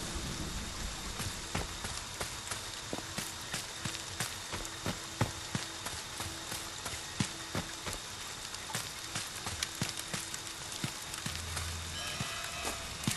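Footsteps thud quickly over leaves and ground.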